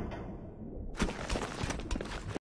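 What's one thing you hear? Metal ladder rungs clank as someone climbs.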